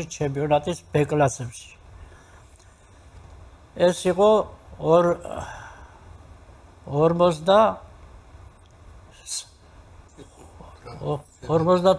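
An elderly man speaks calmly into a close microphone, in short phrases with pauses.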